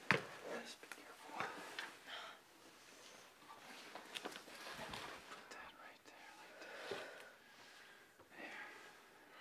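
A man speaks quietly and earnestly up close.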